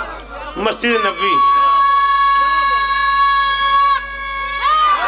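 A man sings one long, held note through a microphone.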